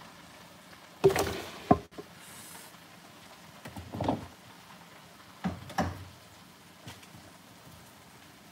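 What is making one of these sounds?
Metal pots clatter on a stove.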